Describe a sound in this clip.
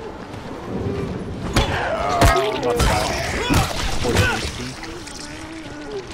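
A blunt weapon thuds into a body.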